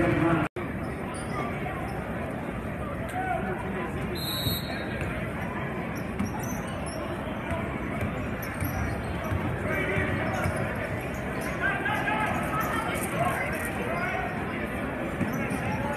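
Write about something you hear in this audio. A crowd murmurs and chatters throughout a large echoing gym.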